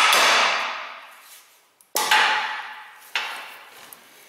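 A hammer strikes metal with loud ringing clangs.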